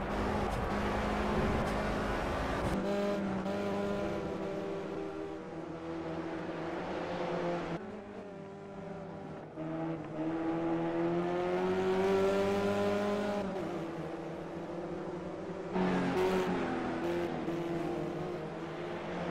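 Racing car engines roar and whine, rising and dropping in pitch as they change gear.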